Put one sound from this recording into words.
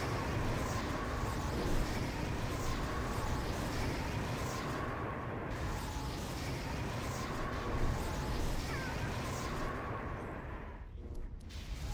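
A wall of fire roars and crackles.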